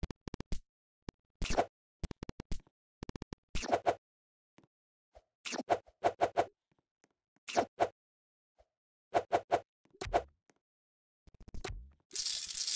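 Quick game chimes and pops sound in bursts as items are collected.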